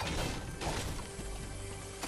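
A video game pickaxe strikes with a thud.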